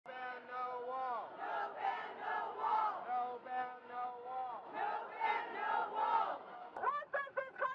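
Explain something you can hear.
A crowd chants loudly in unison outdoors.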